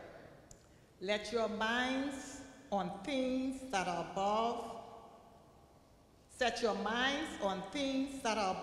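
A congregation sings together in an echoing hall.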